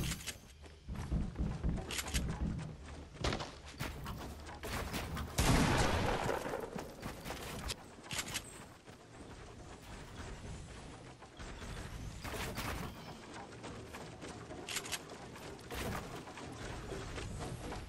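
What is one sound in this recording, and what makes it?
Footsteps clatter on wooden floors in a game.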